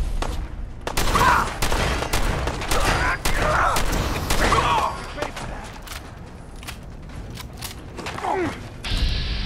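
A combat shotgun fires in blasts.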